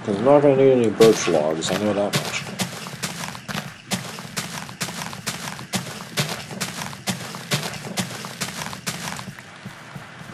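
Dirt crunches in quick, repeated scrapes as a shovel digs.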